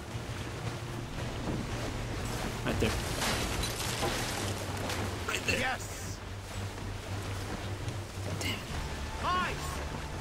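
Waves slap and rush against a small boat.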